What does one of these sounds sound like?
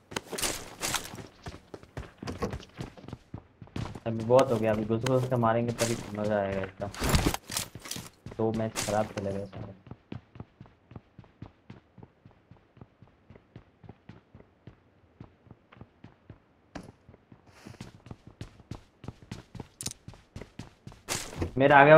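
Quick footsteps patter across a wooden floor.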